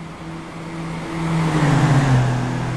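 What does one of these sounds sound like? A racing car engine roars up close and drops in pitch as it passes.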